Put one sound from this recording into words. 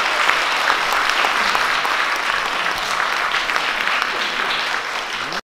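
An audience applauds in an echoing hall.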